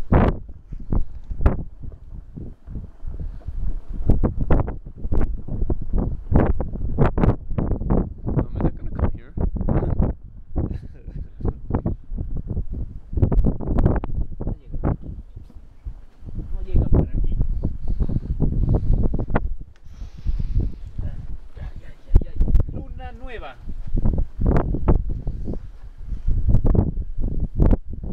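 Strong wind buffets and rumbles in gusts outdoors.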